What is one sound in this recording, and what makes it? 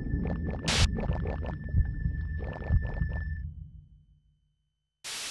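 Video game battle sounds clash and boom with magic effects.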